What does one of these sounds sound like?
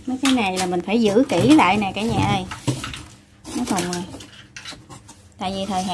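Cardboard rustles and thumps as a box is handled.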